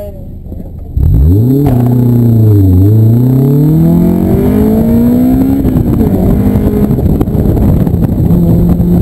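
A car engine roars loudly as the car accelerates hard, rising and falling in pitch with gear changes.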